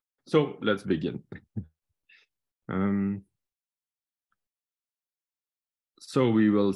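A man speaks calmly over an online call, pausing between phrases.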